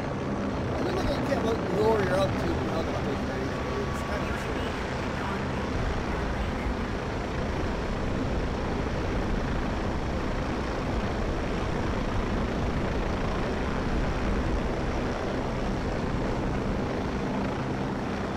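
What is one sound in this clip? A helicopter's rotor and engine drone steadily throughout.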